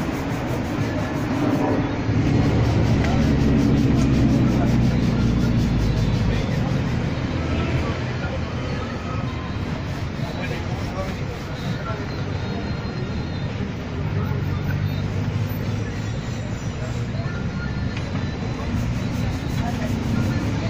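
A cloth rubs briskly against leather shoes.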